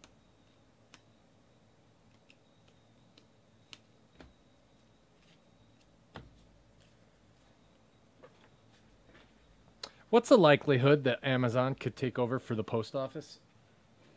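Trading cards rustle and click softly as hands shuffle them.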